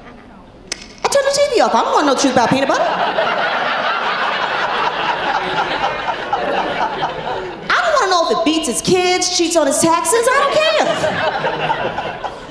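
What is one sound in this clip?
A woman speaks into a microphone with animation and strong expression.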